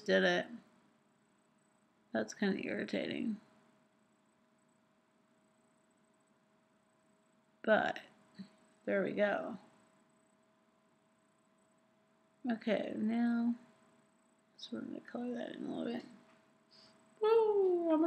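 A young woman talks casually and close by, in short bursts with pauses.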